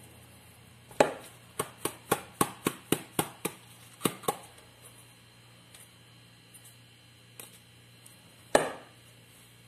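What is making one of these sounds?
A spoon taps against the rim of a plastic bowl in a quick series of knocks.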